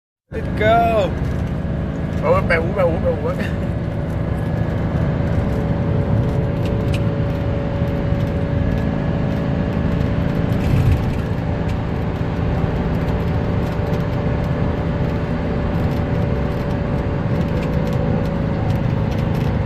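A vehicle engine drones steadily with road rumble.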